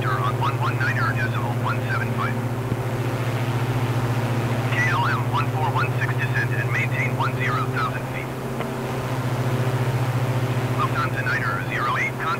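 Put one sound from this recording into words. Twin propeller engines drone steadily.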